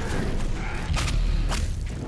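A demon growls and screams.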